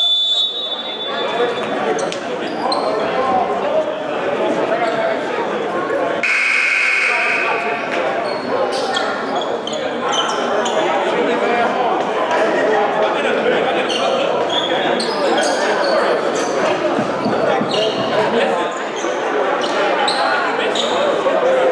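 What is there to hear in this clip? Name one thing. Young men talk and call out over one another in a large echoing gym.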